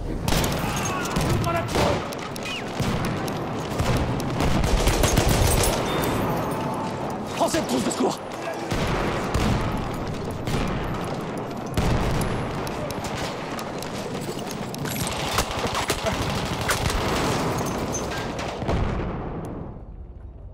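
Gunfire cracks rapidly in an echoing indoor space.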